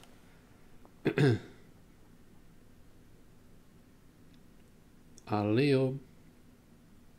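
A young man speaks briefly and casually into a close microphone.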